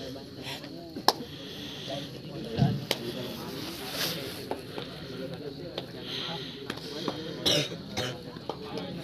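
A crowd of young men chatter and shout outdoors.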